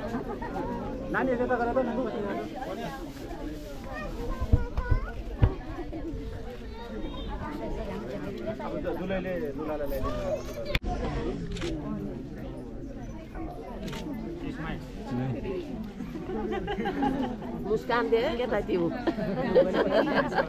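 A crowd of men, women and children chatters all around outdoors.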